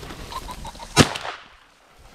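A shotgun fires a single loud shot.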